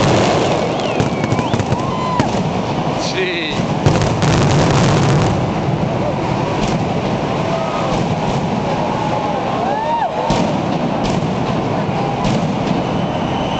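Fireworks whistle as they fly.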